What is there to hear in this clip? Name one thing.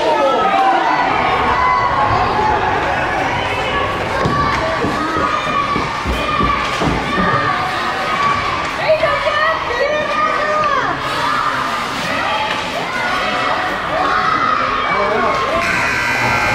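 Hockey sticks clack against the ice and a puck.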